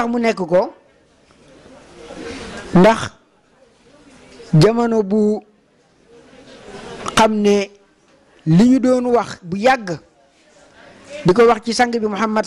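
A man chants loudly into a microphone in short phrases with pauses between them.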